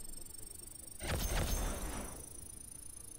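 Short electronic chimes and whooshes play as game awards pop up.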